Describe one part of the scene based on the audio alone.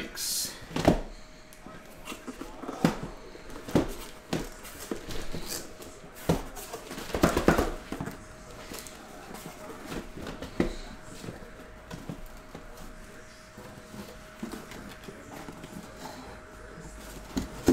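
Cardboard boxes knock and shuffle as they are handled.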